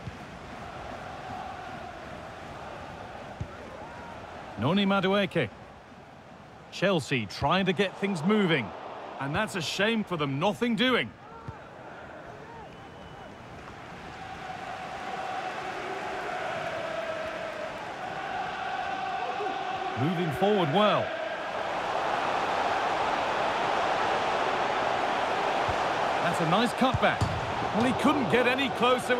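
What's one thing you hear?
A large stadium crowd murmurs and roars, swelling louder as play nears the goal.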